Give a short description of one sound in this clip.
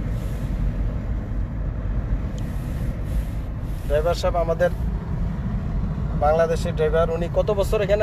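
A car engine hums and tyres rumble steadily on a road.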